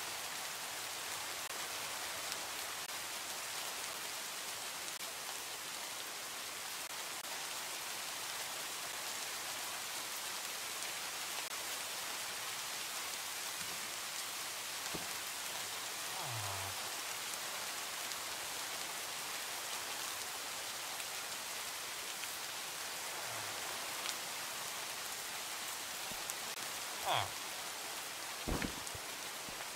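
Rain falls steadily and softly.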